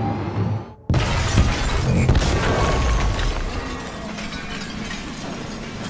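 Glass shatters as a truck crashes through a wall.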